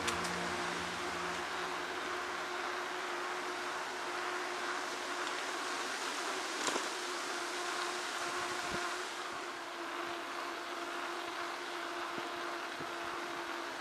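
Bicycle tyres hum steadily on a paved path.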